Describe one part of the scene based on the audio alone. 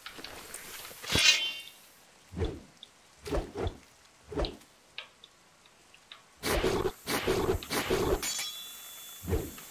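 A sword swings and strikes with sharp clangs.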